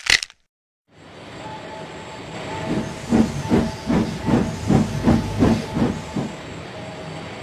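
A small toy train motor whirs as it passes close by.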